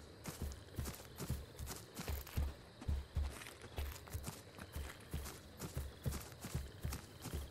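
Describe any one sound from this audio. Heavy footsteps of a large creature thud steadily on dirt.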